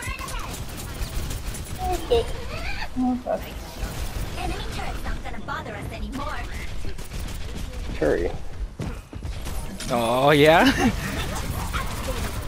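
Energy guns fire in rapid bursts with electric crackles.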